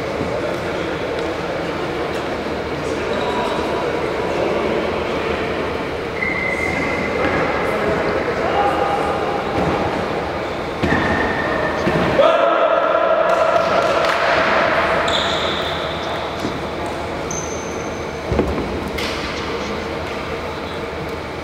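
Young men call out to each other, echoing in a large hall.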